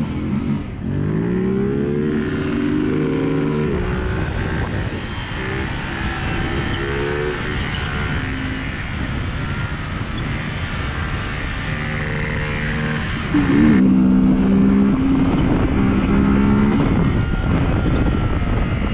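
Wind rushes over a microphone outdoors.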